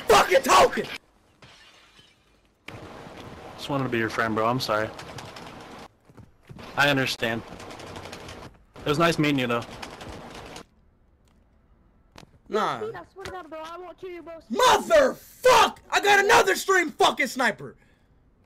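A young man shouts and talks excitedly into a close microphone.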